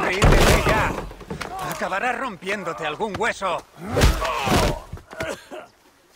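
A body thuds down onto hard ground.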